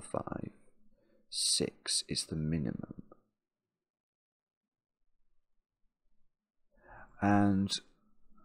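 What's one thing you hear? A man speaks calmly and close to a microphone, in short bursts with a pause.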